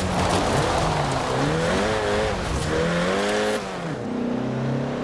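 Tyres skid and hiss on grass and tarmac.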